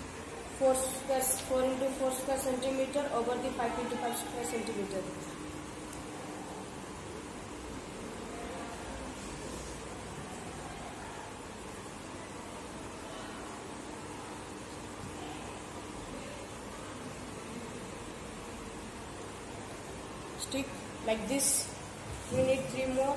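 A boy speaks calmly nearby.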